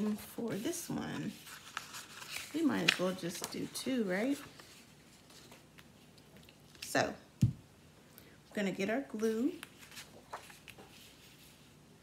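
Sheets of paper slide and tap on a tabletop.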